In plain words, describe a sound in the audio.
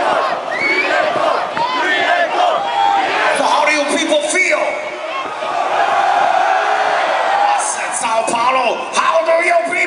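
A large crowd sings and cheers loudly close by.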